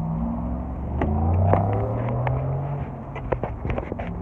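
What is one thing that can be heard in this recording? A car door handle clicks and the door opens.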